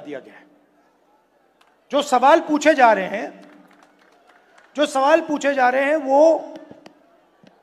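A middle-aged man speaks forcefully into a microphone in a large echoing hall.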